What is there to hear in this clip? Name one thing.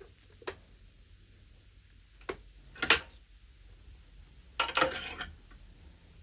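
Metal parts click and clink against a steel vise.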